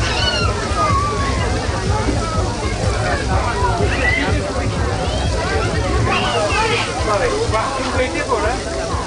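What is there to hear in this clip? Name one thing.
Meat sizzles and crackles on a hot grill.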